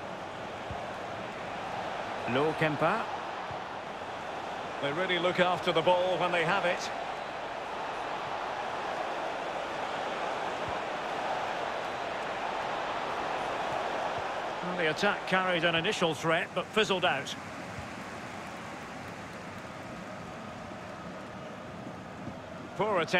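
A large stadium crowd murmurs and cheers steadily in the background.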